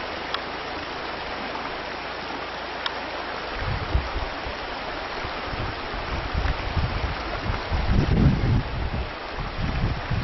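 A shallow river rushes steadily over stones.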